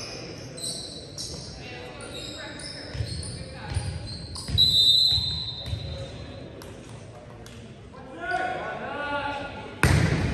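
Sneakers squeak sharply on a wooden gym floor.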